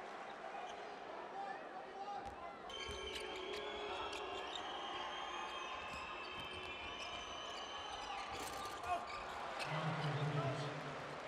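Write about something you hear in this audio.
A crowd in a large echoing arena murmurs and cheers.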